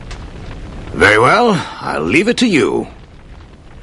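An elderly man speaks calmly in a deep voice.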